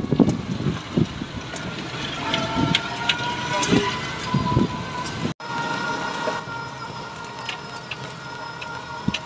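A small motor rickshaw engine rattles and hums steadily.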